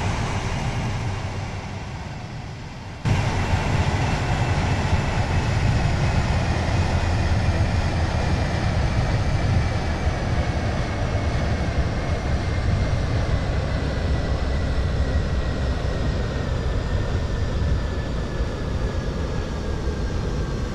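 A train's motor whines and slowly falls in pitch as the train slows down.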